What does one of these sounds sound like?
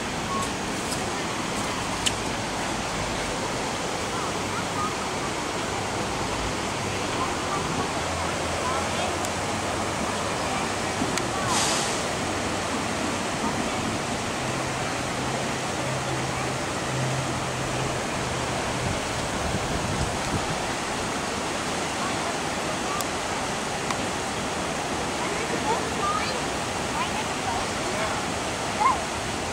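Floodwater rushes and churns in a steady roar.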